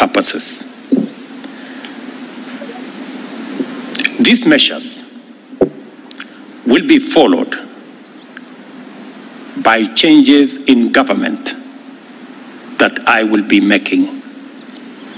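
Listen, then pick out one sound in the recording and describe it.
A middle-aged man speaks slowly and formally into a microphone, with long pauses.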